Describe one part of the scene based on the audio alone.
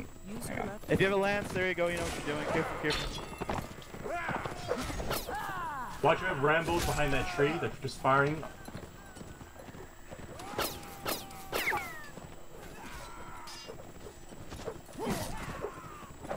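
Horses gallop across grass with thudding hooves.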